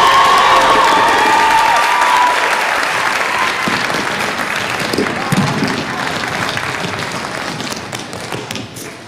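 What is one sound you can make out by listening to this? A large audience cheers and whistles loudly, then slowly fades.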